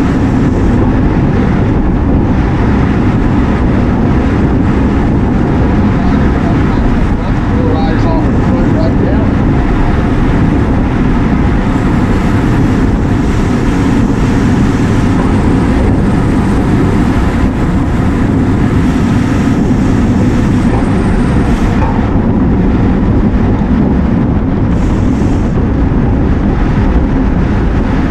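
Wind roars loudly over the microphone throughout.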